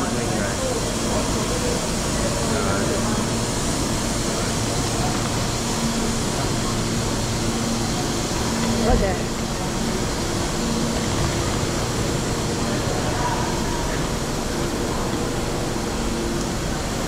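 A train's engine hums steadily in a large echoing hall.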